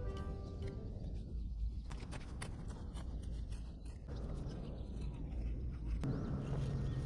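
A hoe chops and scrapes into soil.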